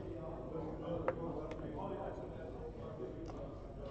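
Wooden game pieces click as they are slid and set down on a board.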